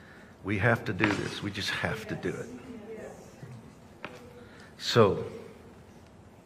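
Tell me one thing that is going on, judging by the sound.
A middle-aged man speaks calmly into a nearby microphone.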